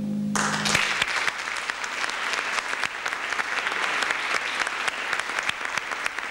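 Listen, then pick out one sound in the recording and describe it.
An audience claps and applauds steadily.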